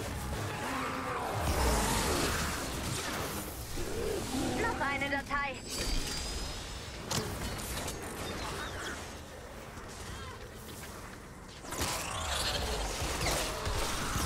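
A blade swings and strikes stone.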